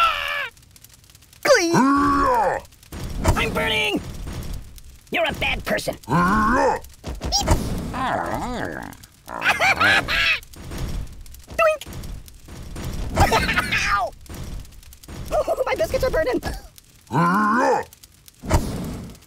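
Flames crackle and whoosh.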